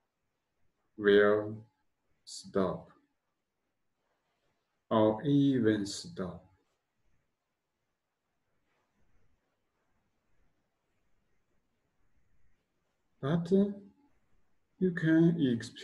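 A man speaks calmly and slowly in short phrases, close by, with long pauses.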